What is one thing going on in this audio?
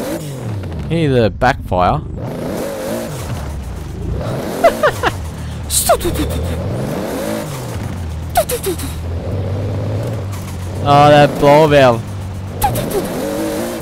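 A turbo whistles and blows off between gear shifts.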